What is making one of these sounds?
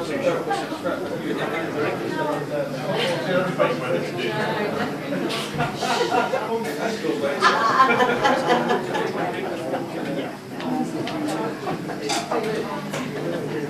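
An electric bass guitar plays a low line.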